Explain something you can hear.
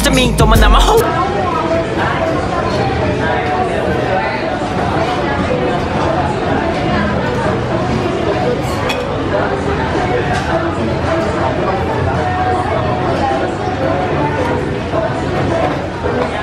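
Many voices murmur and chatter in a busy, echoing hall.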